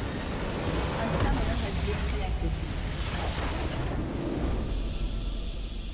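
A large crystal bursts apart with a loud rumbling explosion.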